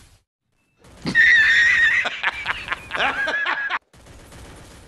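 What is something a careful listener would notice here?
A man laughs loudly and wildly.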